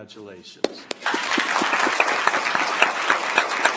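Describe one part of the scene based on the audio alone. A small group of people applaud.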